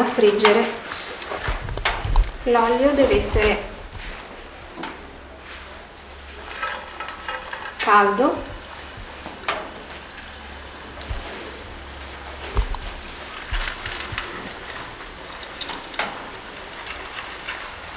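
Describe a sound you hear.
Oil sizzles and crackles in a frying pan.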